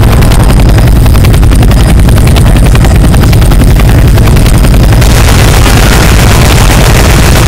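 A rifle fires rapid shots up close.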